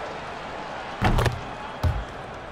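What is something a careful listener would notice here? A crowd cheers in a short burst.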